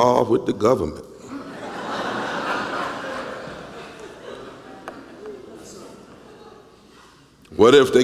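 A large audience calls out and responds in an echoing hall.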